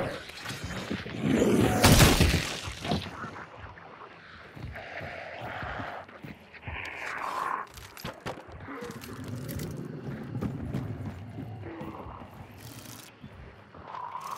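Footsteps thud on creaking wooden boards.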